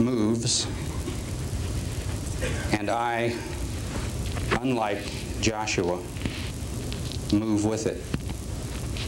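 A man speaks into a microphone in short bursts, heard over loudspeakers in a large echoing hall.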